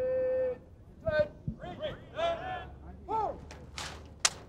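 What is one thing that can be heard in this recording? A man shouts drill commands loudly outdoors.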